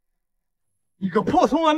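A man speaks loudly and angrily close by.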